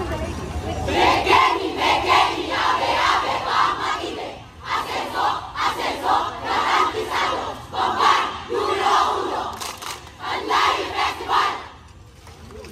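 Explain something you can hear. A large group of performers chants loudly together outdoors.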